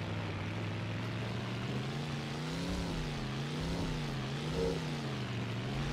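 A car engine hums steadily, its pitch rising and falling.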